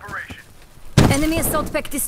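An explosion booms loudly close by.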